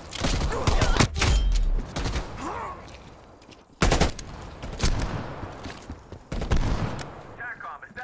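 Loud gunshots fire in short bursts.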